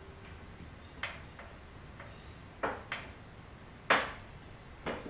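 Metal parts clank.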